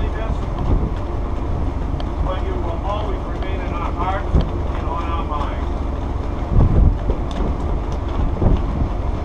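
Wind blows steadily and rumbles in gusts outdoors.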